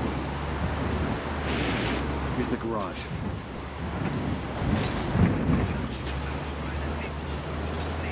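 A truck engine rumbles steadily as the truck drives along.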